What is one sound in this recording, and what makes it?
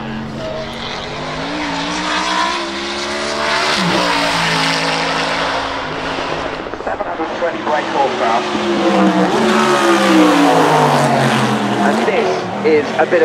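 A race car engine roars loudly as the car accelerates past.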